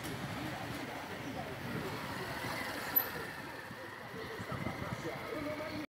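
A motorcycle engine hums as it rides along the street.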